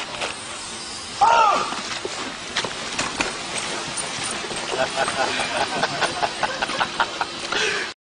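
Boots thud on grass as men run.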